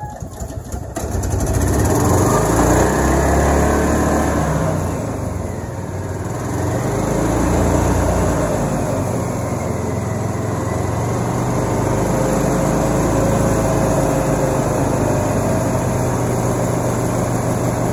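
A small engine runs loudly with a steady rumble.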